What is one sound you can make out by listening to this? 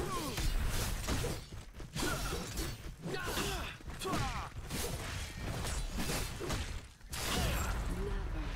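Swords clash and blows land in a fast fight.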